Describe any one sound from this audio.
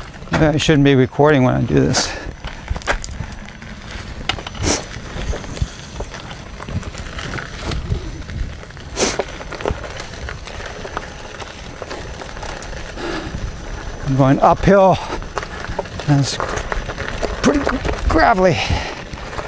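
Skateboard wheels rumble over a gravel path.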